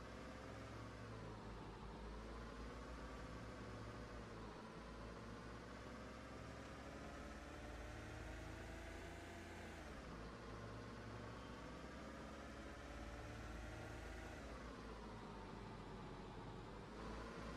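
An engine hums steadily, its pitch slowly rising and falling.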